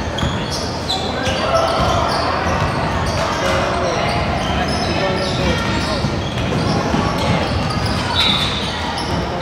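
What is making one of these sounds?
Young boys shout and call out in a large echoing hall.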